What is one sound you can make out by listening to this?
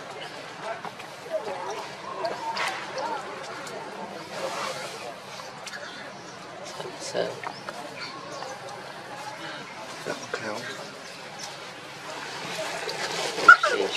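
A baby monkey squeaks softly close by.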